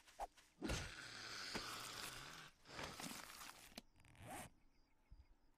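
A wooden club strikes with heavy thuds.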